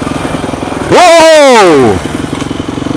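A small dirt bike engine revs loudly nearby and drops in pitch as it passes.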